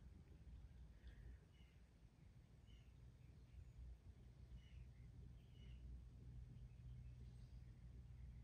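Small metal parts clink softly in a person's fingers.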